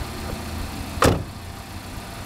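A car door slams shut with a thud.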